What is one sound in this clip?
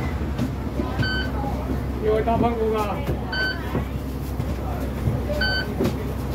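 A card reader beeps sharply as passengers tap their cards.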